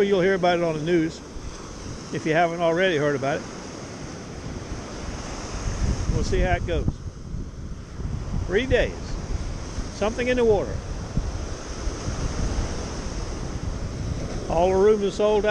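Small waves break and wash up onto the shore.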